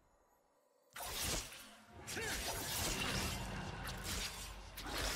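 Game combat effects whoosh and crackle as spells hit.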